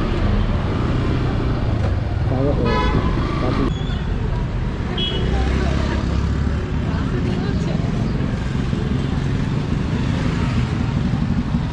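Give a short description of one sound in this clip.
A motorcycle engine idles close by with a low rumble.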